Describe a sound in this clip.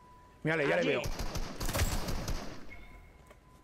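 Gunshots crack in a video game.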